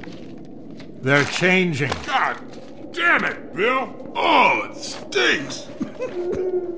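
A man speaks roughly and with irritation.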